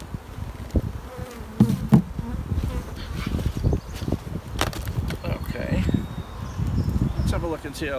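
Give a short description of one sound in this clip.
A bee smoker puffs.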